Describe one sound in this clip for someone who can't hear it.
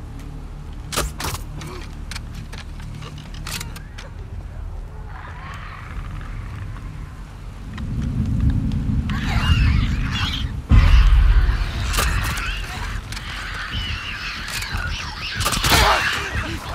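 A pistol fires loud shots that echo down a corridor.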